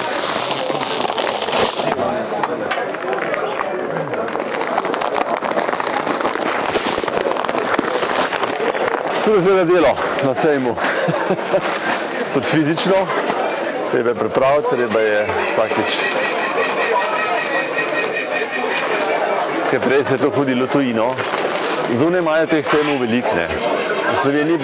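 A crowd murmurs.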